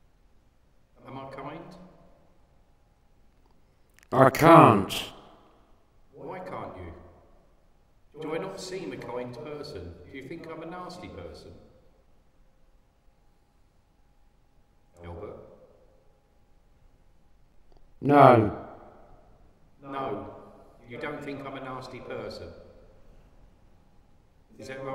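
A middle-aged man speaks in short, hesitant bursts in a quiet, echoing room.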